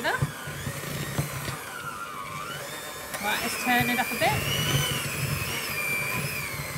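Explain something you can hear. An electric hand mixer whirs steadily.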